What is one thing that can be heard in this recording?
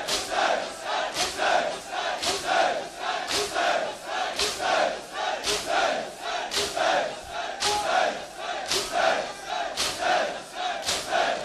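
A large crowd of men chants loudly together in a rhythmic beat.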